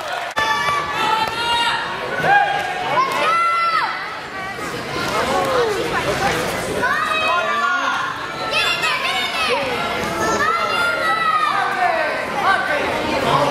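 Spectators shout encouragement loudly in a large echoing hall.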